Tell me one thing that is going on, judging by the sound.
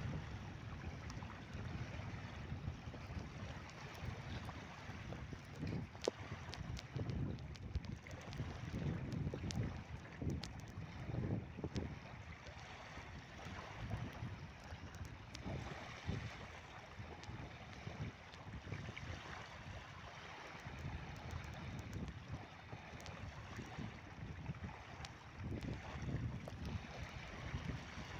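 Wind rumbles and gusts against the microphone outdoors.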